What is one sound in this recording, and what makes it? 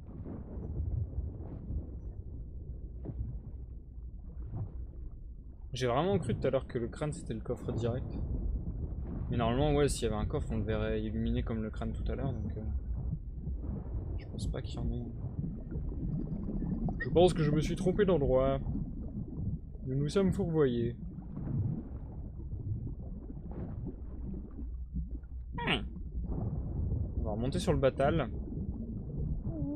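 A low underwater rumble drones steadily.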